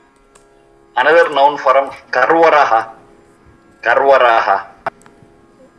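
An elderly man chants in a steady, sung voice close to a microphone.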